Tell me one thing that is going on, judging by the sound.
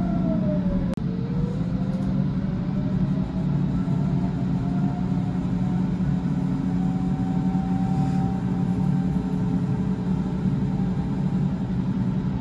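An electric train's motor whines, rising and falling in pitch.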